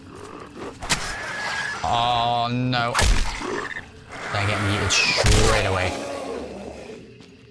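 Creatures shriek and snarl close by.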